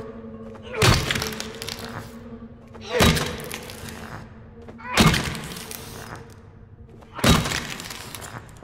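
A heavy hammer slams down hard on a tiled floor with a ringing echo.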